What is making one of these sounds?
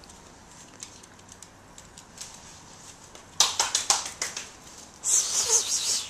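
Small dogs' claws click and patter on a wooden floor.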